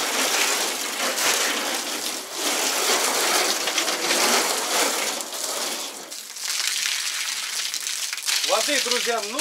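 Water from a hose sprays hard, hissing and splashing against a wall.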